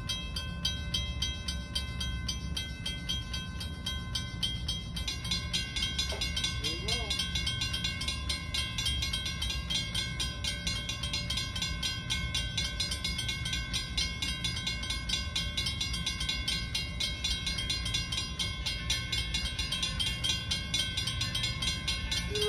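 Wind blows steadily across the microphone outdoors.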